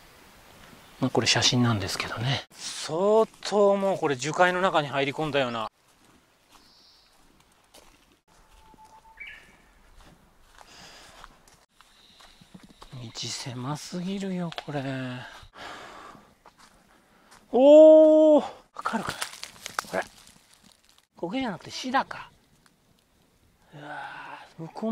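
A middle-aged man talks calmly and close by, in short bursts.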